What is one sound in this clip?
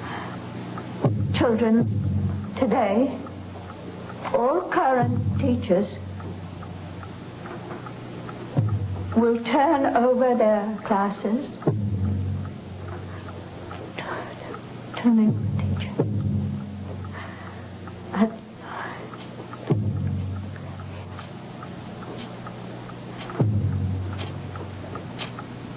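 An elderly woman speaks slowly and calmly, close by, with pauses.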